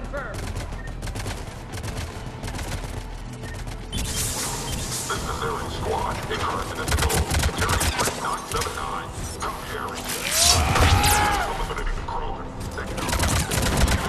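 Rapid gunfire crackles in bursts.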